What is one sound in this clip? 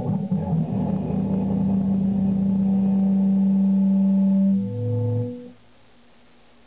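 An electric guitar chord rings out and fades.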